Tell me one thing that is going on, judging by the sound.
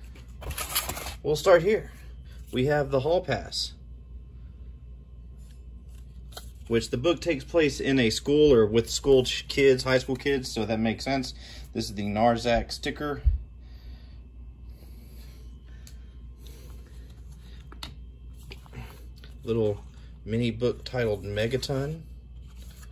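Cardboard and paper rustle as hands handle them.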